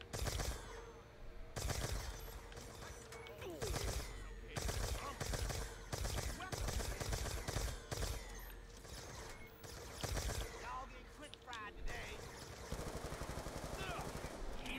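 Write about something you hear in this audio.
Loud gunshots fire in bursts.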